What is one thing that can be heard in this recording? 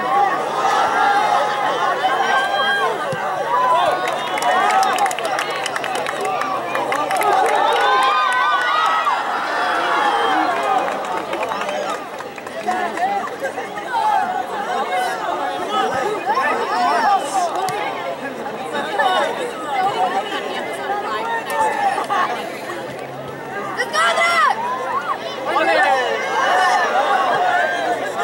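A crowd of spectators cheers and calls out from the stands.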